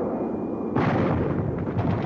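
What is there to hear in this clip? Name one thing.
Jet planes roar past overhead.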